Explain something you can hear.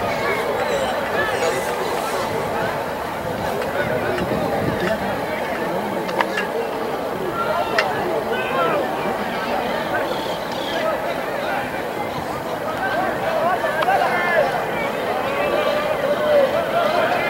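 Young men shout to each other outdoors.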